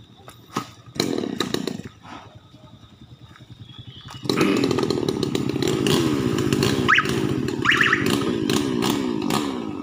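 A chainsaw buzzes loudly, cutting through a fallen tree.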